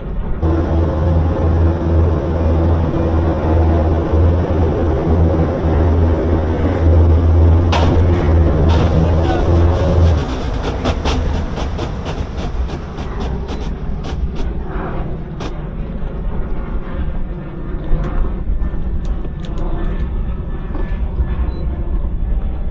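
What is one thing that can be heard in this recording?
Wind buffets hard against the microphone.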